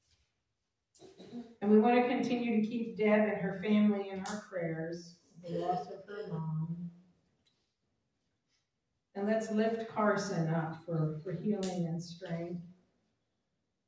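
An elderly woman speaks calmly into a microphone in an echoing room.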